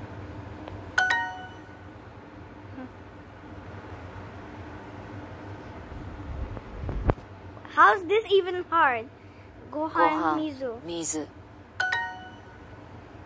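A short, bright electronic chime rings out.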